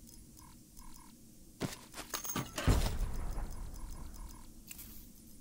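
Short soft beeps sound as a game menu is browsed.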